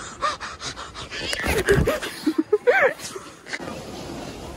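A young woman shrieks with excitement close by.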